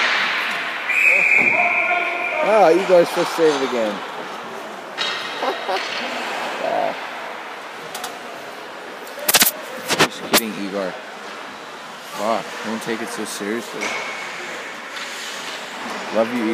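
Young players shout to each other across the rink.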